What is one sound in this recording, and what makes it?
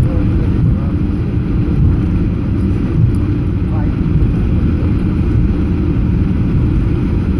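A jet engine roars steadily from inside an aircraft cabin.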